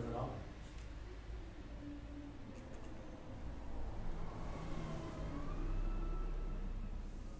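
A man chants slowly into a microphone, heard through a loudspeaker in an echoing room.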